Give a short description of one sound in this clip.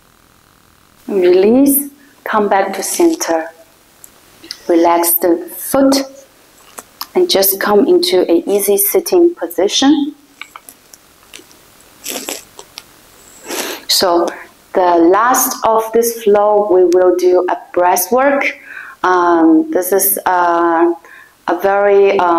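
A young woman speaks calmly and gently, close by.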